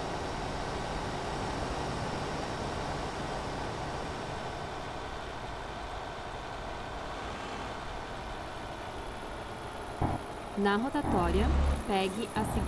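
A truck engine hums steadily while driving on a road.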